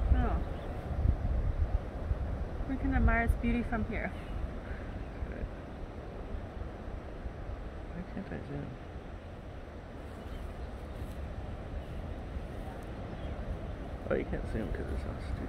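Wind gusts outdoors, rustling leaves and grass.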